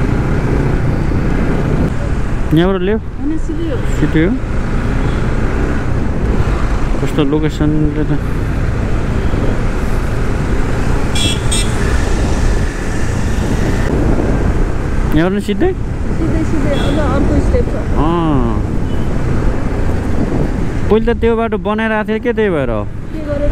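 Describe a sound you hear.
Wind rumbles against the rider outdoors.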